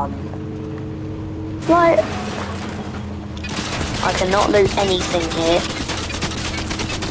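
A heavy bus engine rumbles steadily as it drives along a road.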